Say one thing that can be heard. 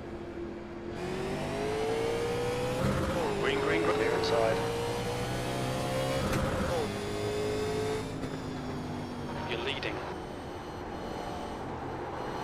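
A race car engine roars loudly and revs up through the gears.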